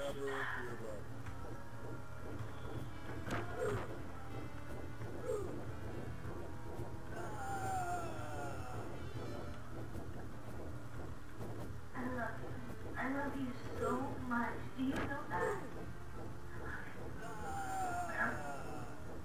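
Electronic game sound effects zap and swoop.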